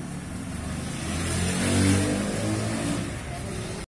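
Street traffic hums outdoors.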